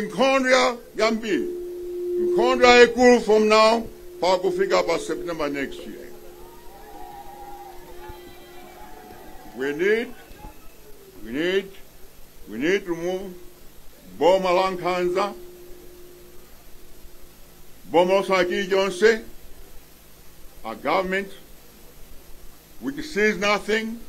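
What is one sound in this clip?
An elderly man speaks forcefully into a microphone through loudspeakers, with pauses between phrases.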